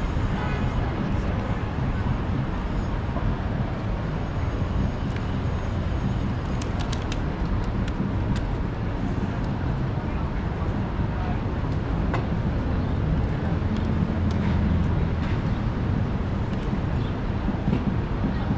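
Traffic rumbles steadily through a busy city street outdoors.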